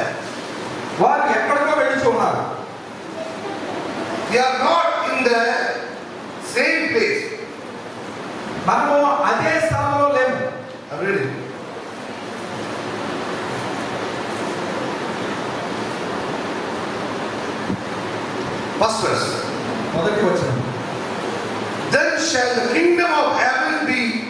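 A man speaks steadily into a microphone, heard through loudspeakers in an echoing room.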